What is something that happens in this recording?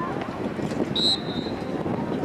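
A referee's whistle blows once, short and sharp, at a distance.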